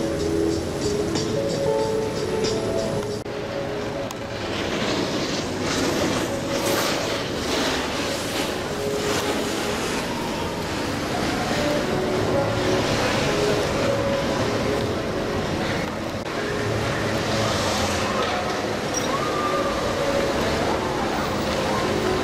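A chairlift's machinery hums and rumbles steadily.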